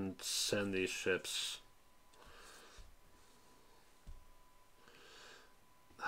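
A playing card slides across a tabletop.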